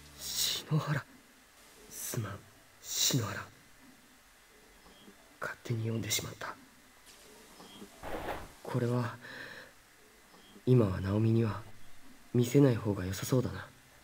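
A young man reads out through a headset microphone in short bursts with pauses.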